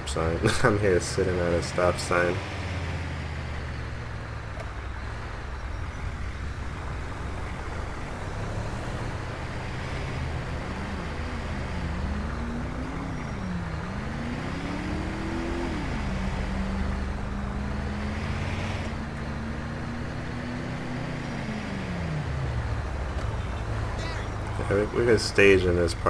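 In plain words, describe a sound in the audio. A vehicle engine rumbles low and steadily while driving.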